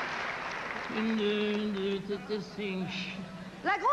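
An elderly man speaks close by.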